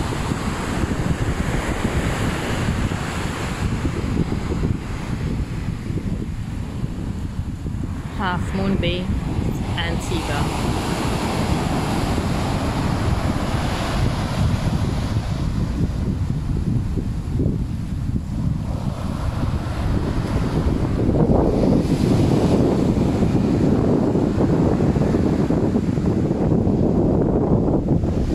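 Wind gusts and rumbles into the microphone outdoors.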